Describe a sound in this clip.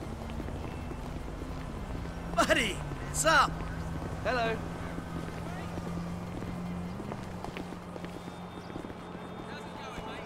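Footsteps tap on a paved sidewalk.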